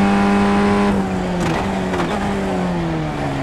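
A race car engine drops in pitch as the driver shifts down and slows for a corner.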